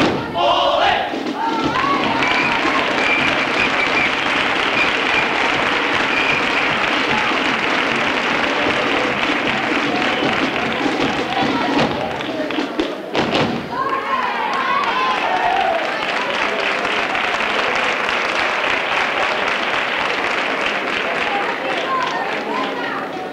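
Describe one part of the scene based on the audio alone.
A group of performers sings loudly together.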